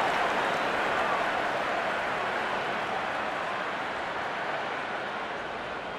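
A large stadium crowd cheers loudly and slowly fades a little.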